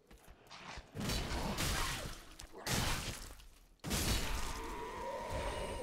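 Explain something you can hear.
A sword slashes and strikes with heavy, sudden thuds.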